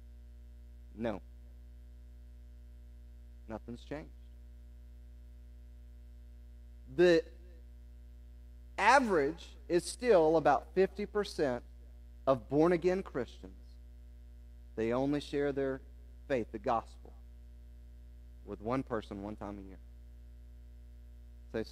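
A man speaks with animation through a microphone, pausing often.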